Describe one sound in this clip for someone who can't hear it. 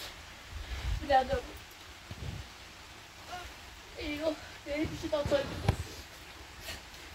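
Children talk nearby in high voices.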